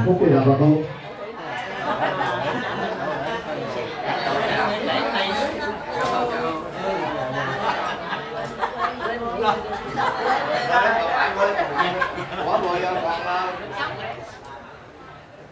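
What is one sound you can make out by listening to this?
Several adults chat and laugh together close by.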